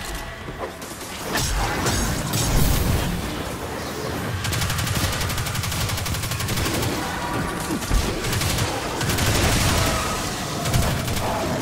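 Deep explosions boom.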